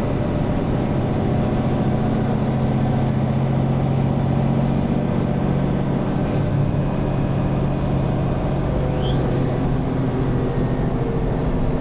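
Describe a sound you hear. A bus engine idles with a steady low rumble.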